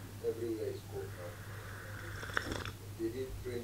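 A young woman sips a hot drink from a mug.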